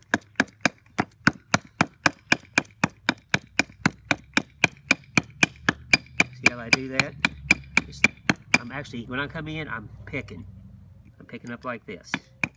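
A hatchet chops rapidly and steadily into wood with sharp knocks.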